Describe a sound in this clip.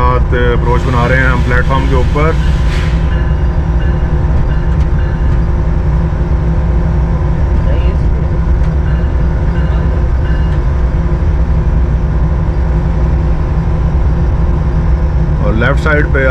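A locomotive engine rumbles steadily and loudly up close.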